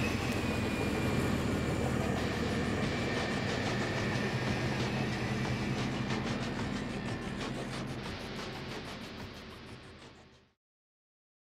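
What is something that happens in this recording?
An armored truck's engine idles with a steady low rumble.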